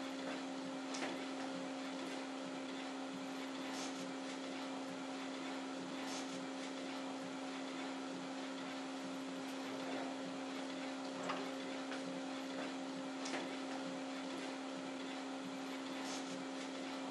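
Small clicks and ticks come from a printer's mechanism.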